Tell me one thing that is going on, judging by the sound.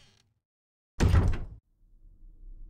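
A heavy wooden door thuds.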